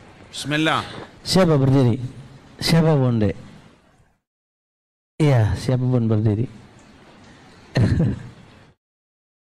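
A man speaks with animation into a microphone, in short bursts with pauses.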